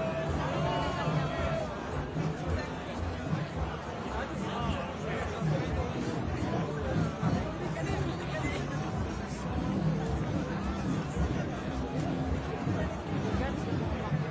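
A crowd of men and women murmurs and chatters close by, outdoors.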